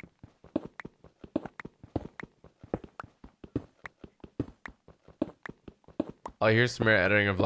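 A pickaxe rapidly chips at stone blocks with quick clicks.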